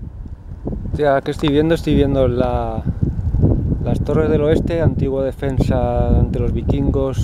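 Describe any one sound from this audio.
A man speaks calmly close to the microphone.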